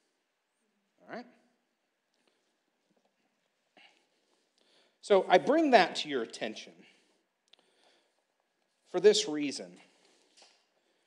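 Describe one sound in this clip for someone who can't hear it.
A man speaks slowly through a microphone, with long pauses.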